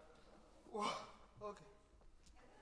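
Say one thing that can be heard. A woman laughs briefly.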